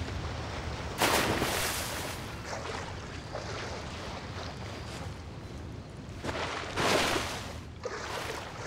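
A figure dives into water with a loud splash.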